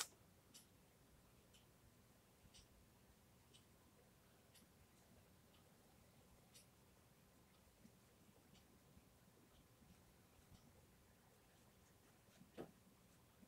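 A paintbrush softly taps and strokes on paper.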